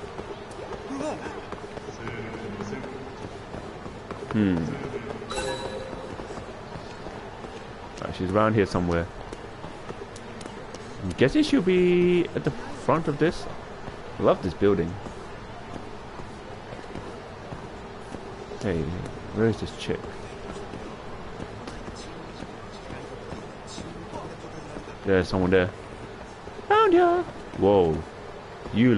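Footsteps tap on pavement at a brisk pace.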